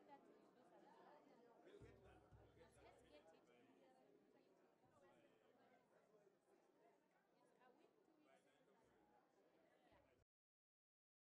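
A crowd of men and women chatter in a large room.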